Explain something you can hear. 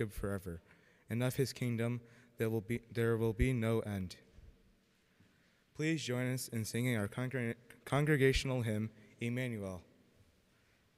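A choir of young women sings together in a large echoing hall.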